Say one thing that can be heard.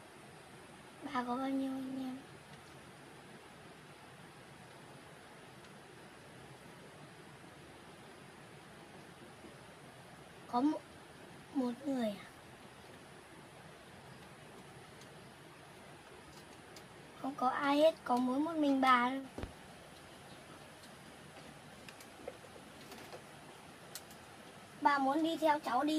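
A young woman speaks calmly close by, in short bursts.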